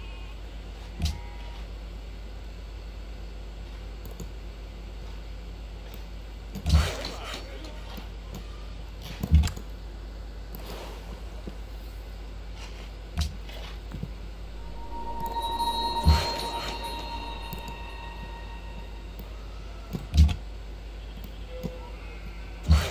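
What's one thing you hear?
Soft interface sounds thump and chime now and then.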